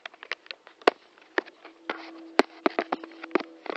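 A young boy speaks quietly close by.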